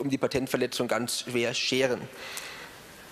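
A young man speaks calmly into a microphone in a large echoing hall.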